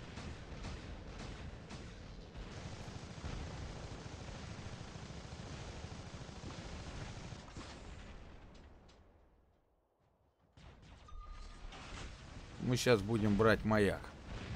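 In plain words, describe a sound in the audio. Game engines rumble and hum steadily.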